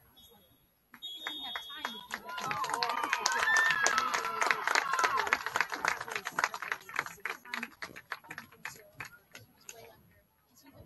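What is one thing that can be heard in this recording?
A crowd cheers and shouts in the distance outdoors.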